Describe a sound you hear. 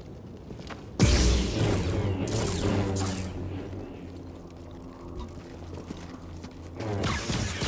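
A lightsaber swings with a buzzing whoosh.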